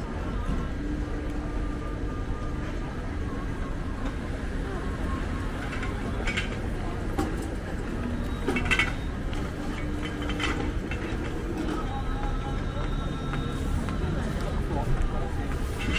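A busy street hums with distant traffic outdoors.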